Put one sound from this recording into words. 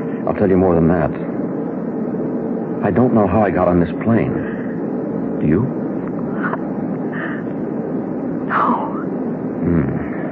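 A man speaks dramatically through a crackly old radio recording.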